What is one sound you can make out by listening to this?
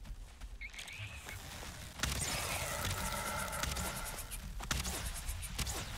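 A weapon swings and strikes a creature.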